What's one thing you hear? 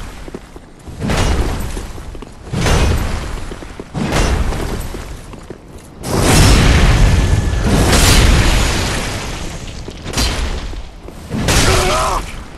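Heavy weapons clash and strike armour in loud bursts.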